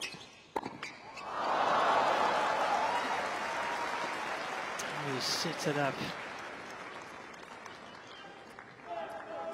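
A large crowd cheers and applauds loudly, then fades.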